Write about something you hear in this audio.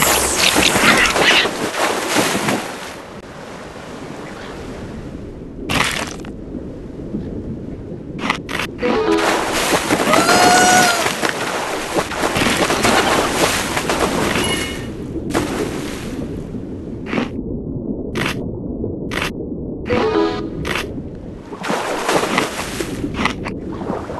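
A shark chomps on prey in quick bites.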